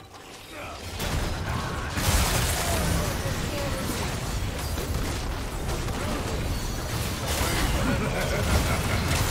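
Game spells and attacks crash and explode in a loud, busy fight.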